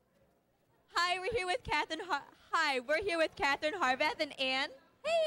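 A young woman speaks with animation into a microphone, close by.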